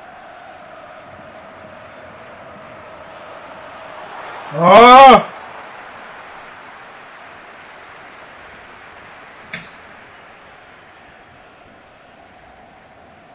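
A stadium crowd murmurs in the distance.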